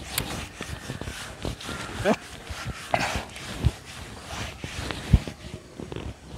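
A cloth rubs and squeaks across a chalkboard.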